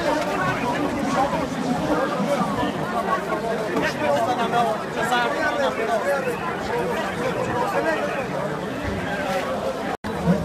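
A crowd of men and women talk over one another nearby.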